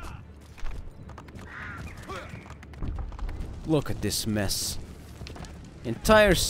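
Horse hooves gallop on packed dirt.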